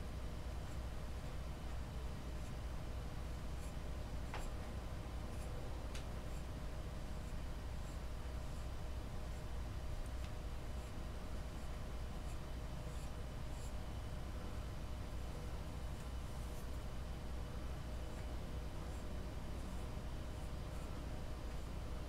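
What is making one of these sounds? A wooden tool scrapes and scratches softly against clay.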